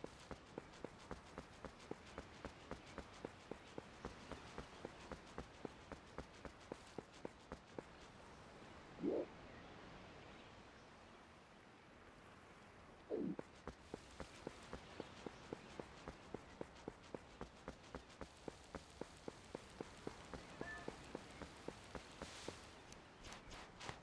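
Quick footsteps run over soft ground.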